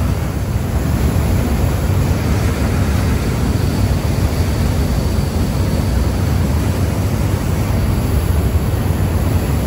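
A boat engine rumbles low and steadily.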